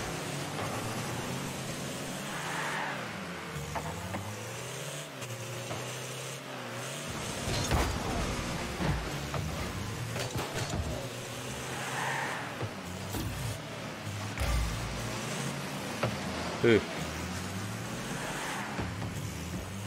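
A car engine hums and revs steadily.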